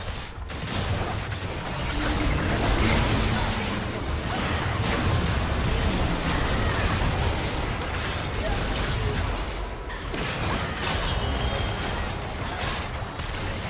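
Game battle effects crash, zap and whoosh without pause.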